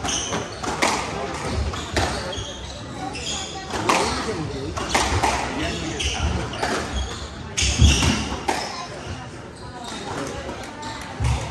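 Squash balls smack sharply against the walls in an echoing hall.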